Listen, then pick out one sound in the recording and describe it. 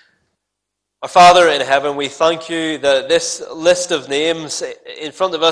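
A young man speaks clearly into a microphone.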